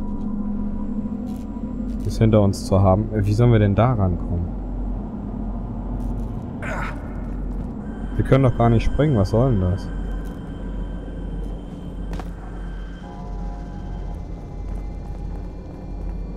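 Footsteps walk slowly over hard ground.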